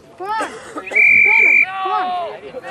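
A referee's whistle blows a long, steady blast.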